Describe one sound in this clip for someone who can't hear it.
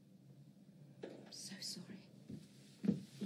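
A woman speaks quietly.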